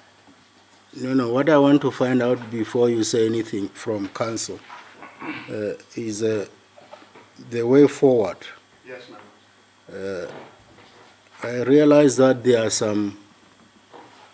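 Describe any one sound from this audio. An older man speaks steadily and firmly into a microphone.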